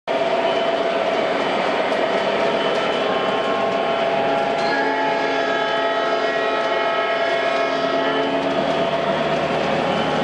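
A model train rumbles steadily along its track.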